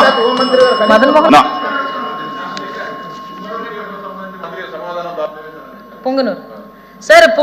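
A middle-aged man speaks firmly into a microphone in a large echoing hall.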